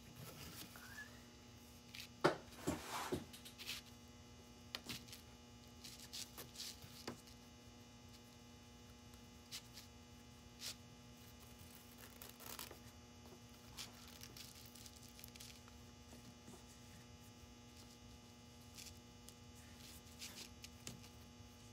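Ribbon rustles softly as hands handle and tie it.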